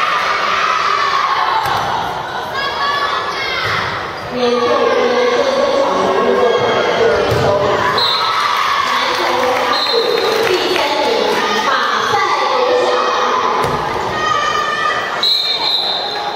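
A ball thuds on a wooden floor.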